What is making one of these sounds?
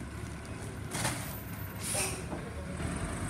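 Bags of yard waste thump and rustle into a garbage truck.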